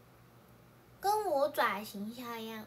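A young woman speaks close to the microphone in a high, lively voice.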